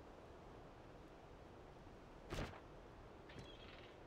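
A soft interface click sounds as a menu opens.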